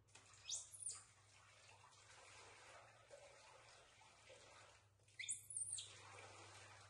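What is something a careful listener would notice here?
A baby monkey squeals shrilly, close by.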